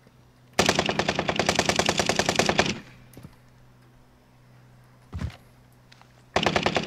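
A rifle fires in fast, rapid bursts.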